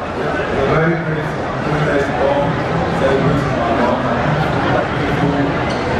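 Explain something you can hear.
A man speaks with animation into a microphone, heard through loudspeakers in a large hall.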